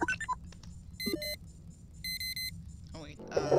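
Short electronic beeps chirp.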